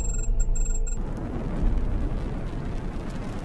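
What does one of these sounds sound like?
A burning pod roars as it plunges through the air.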